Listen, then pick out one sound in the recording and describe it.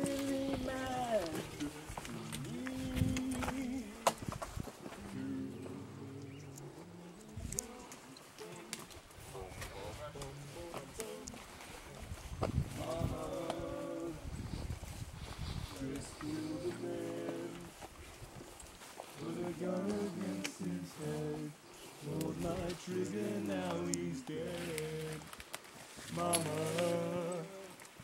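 Hiking boots crunch on a dirt trail.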